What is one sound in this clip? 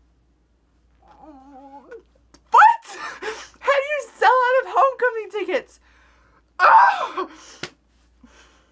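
A young woman speaks close to a microphone, with animation and excitement.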